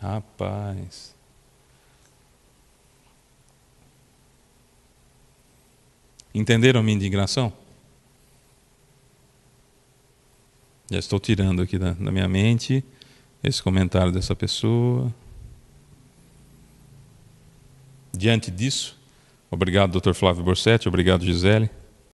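A man speaks with animation into a microphone, with pauses.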